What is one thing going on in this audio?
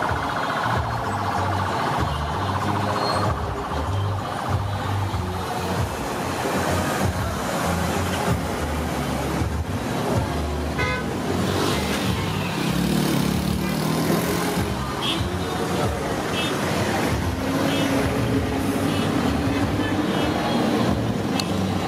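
Vehicle engines hum as cars and vans roll slowly past.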